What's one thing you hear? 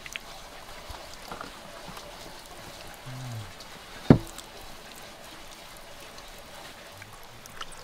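Chunks of meat slide off a metal skewer and drop into a pot.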